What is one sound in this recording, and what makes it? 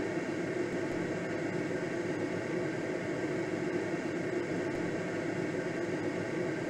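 Wind rushes steadily past a glider in flight.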